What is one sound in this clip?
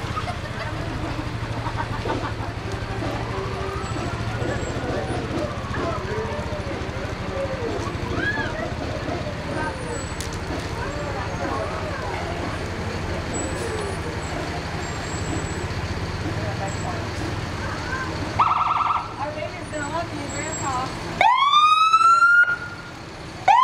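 Tyres hiss on a wet road as vehicles roll slowly past.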